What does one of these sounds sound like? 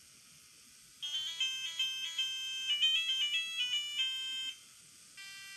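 A small robot plays a quick tune of electronic beeps.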